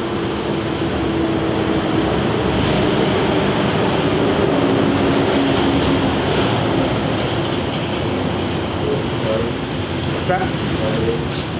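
A man speaks calmly nearby, outdoors.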